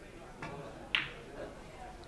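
A cue tip strikes a billiard ball with a sharp click.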